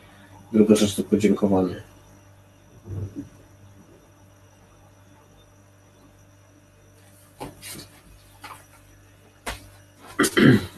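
A man speaks calmly into a microphone over an online call, with pauses.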